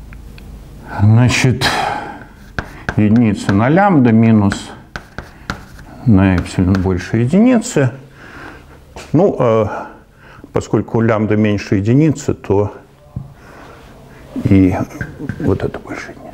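An elderly man lectures calmly in a room with a slight echo.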